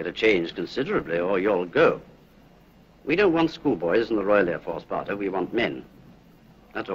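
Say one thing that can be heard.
A middle-aged man speaks sternly and clearly, close by.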